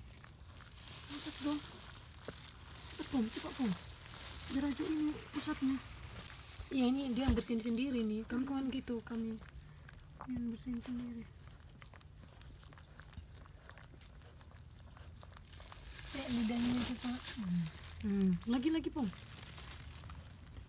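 A dog licks a newborn puppy with wet, smacking sounds.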